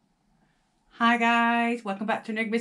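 A woman speaks brightly and with animation, close by.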